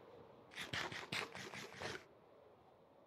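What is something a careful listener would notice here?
A video game character crunches food while eating.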